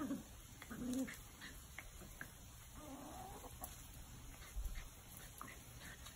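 A hen clucks softly nearby.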